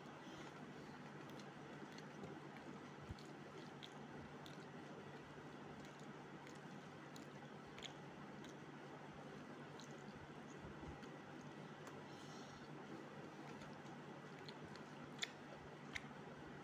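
Fingers squish and mix soft rice on a steel plate.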